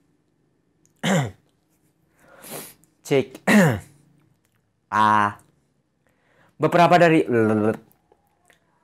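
A young man speaks in short, animated bursts close to the microphone.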